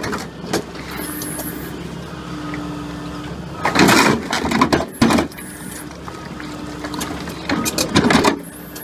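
A heavy machine engine hums steadily.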